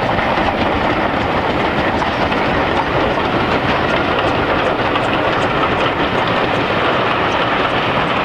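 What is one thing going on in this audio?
A train rumbles along the tracks at a distance and slowly moves away.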